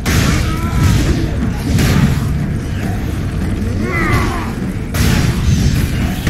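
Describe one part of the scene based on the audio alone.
Jet thrusters roar and hiss in short bursts.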